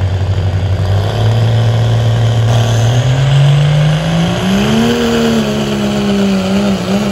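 A heavy engine revs up and roars, rising in pitch.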